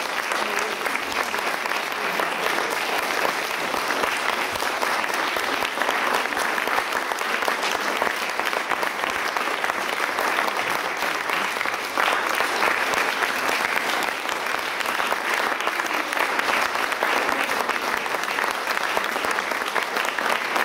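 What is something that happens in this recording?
A large mixed choir sings together in a reverberant hall.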